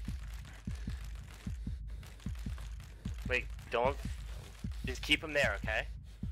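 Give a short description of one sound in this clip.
Footsteps thud steadily on hollow wooden planks.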